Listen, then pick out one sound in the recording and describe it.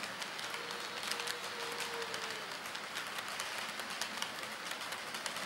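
A model train rattles along its track and fades away.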